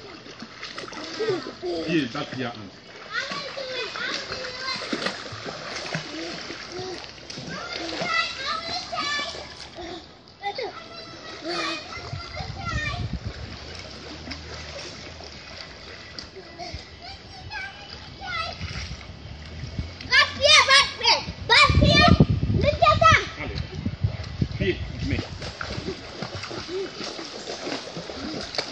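A man speaks encouragingly to a child.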